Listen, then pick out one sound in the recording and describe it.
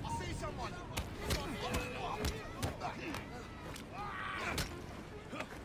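Fists land on bodies with heavy thuds.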